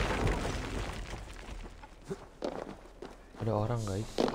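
Stone and rubble crash and rumble as a structure collapses.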